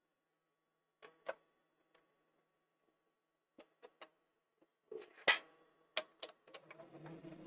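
Metal parts click and knock together as a workpiece is fitted into a lathe chuck.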